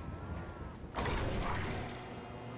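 A metal container clanks down onto a trailer.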